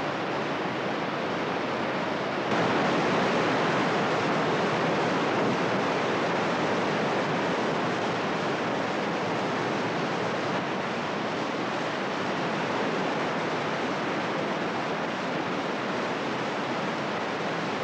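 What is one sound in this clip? Water rushes and roars loudly as it pours over a weir.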